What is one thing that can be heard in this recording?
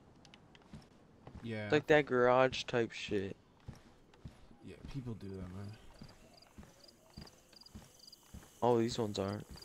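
Footsteps thud quickly on a hollow wooden floor.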